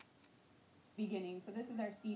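A woman speaks calmly, heard through a television speaker.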